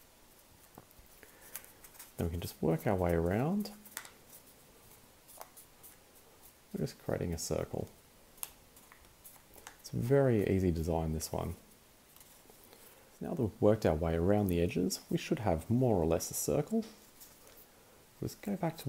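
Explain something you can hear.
Paper crinkles and rustles softly as it is bent into a loop.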